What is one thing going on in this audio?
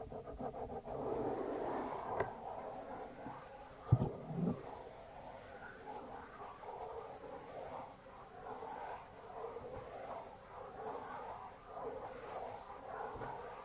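Fingers brush and rustle softly right against a microphone.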